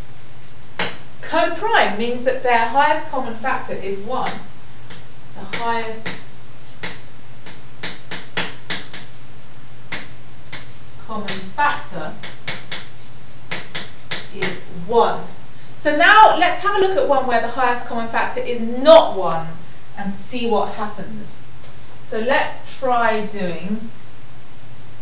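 A young woman speaks calmly and clearly, as if lecturing.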